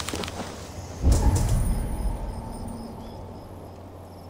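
A deep rumbling whoosh bursts out and slowly fades.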